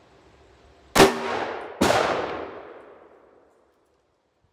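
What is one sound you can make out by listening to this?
Two loud handgun shots ring out outdoors and echo away.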